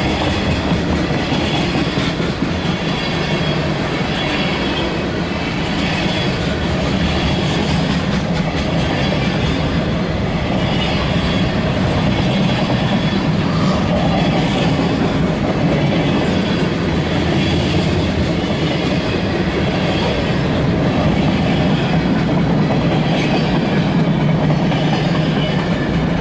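A freight train rumbles and clatters past close by.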